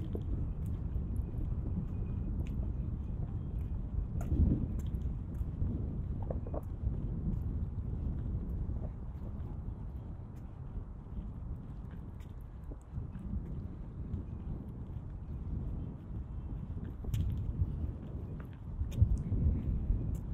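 Wind blows across open ground outdoors.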